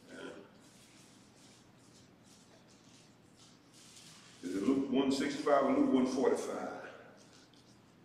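A man speaks slowly and calmly into a microphone.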